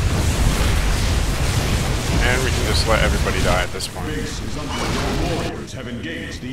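Sci-fi laser weapons fire and crackle in a loud battle.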